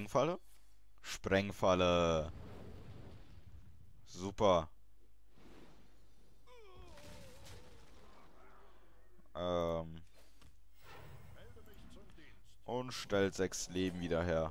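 Magical chimes and whooshes sound in bursts.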